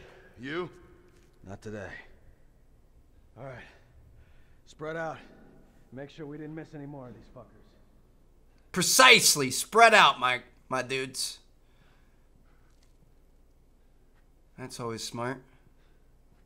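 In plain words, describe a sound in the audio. A young man speaks in short bursts into a headset microphone, at times loudly.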